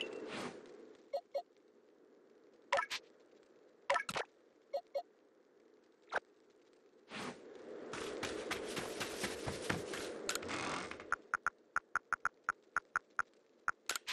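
Menu selections click with short electronic blips.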